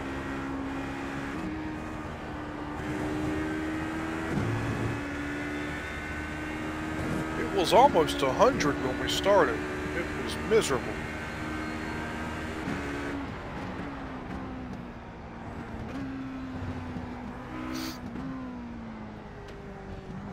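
A racing car engine hums and changes pitch as gears shift.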